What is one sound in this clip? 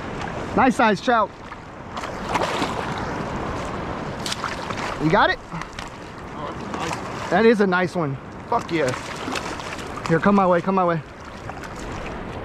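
A fish thrashes and splashes at the water's surface.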